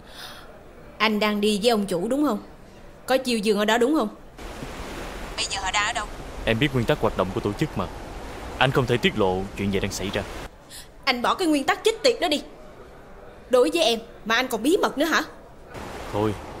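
A young woman talks on a phone, firmly and with feeling.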